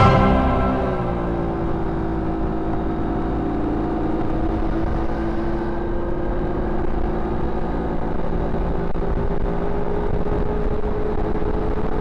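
A car engine hums steadily while driving along a road.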